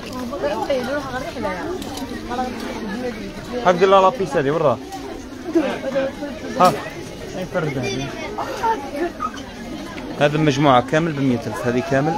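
Men and women talk loudly nearby in a busy crowd.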